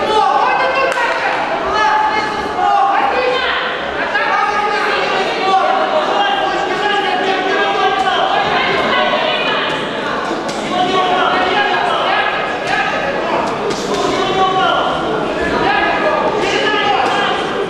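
A crowd of spectators shouts and cheers loudly in an echoing hall.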